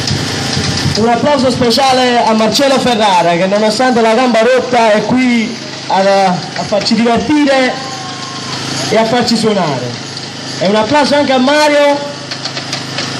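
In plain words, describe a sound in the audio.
A group of men sings together loudly in unison.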